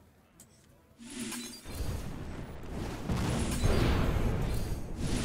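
A game sound effect of a booming, rumbling blast plays.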